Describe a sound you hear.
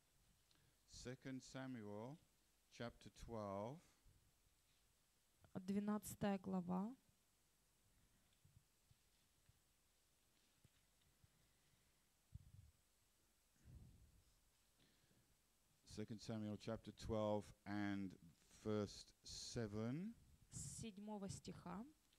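An elderly man speaks slowly and calmly into a microphone, with long pauses.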